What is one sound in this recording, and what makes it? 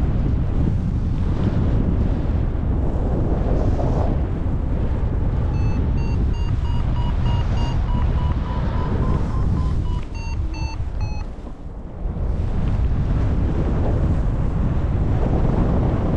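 Strong wind rushes and buffets loudly, outdoors high in the air.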